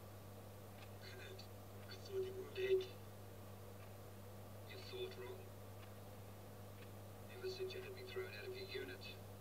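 A man speaks in a tense, threatening voice nearby.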